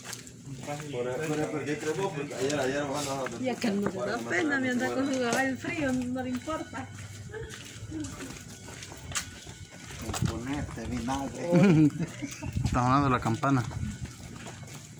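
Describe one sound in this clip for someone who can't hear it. A man talks close by in a lively voice, outdoors.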